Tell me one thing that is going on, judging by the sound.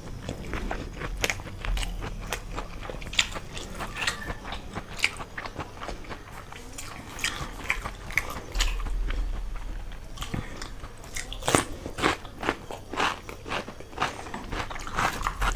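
A young woman chews food loudly with wet smacking sounds close to a microphone.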